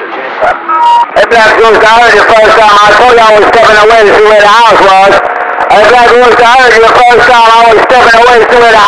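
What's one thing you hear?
A radio loudspeaker blares a loud, distorted broadcast.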